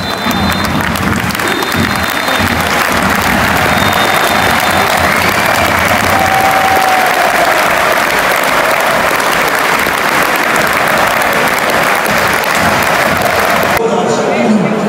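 A large stadium crowd roars and cheers loudly outdoors.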